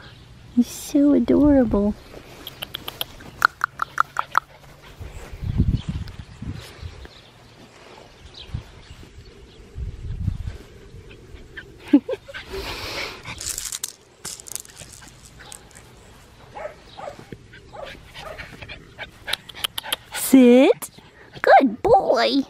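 A puppy yips and whines up close.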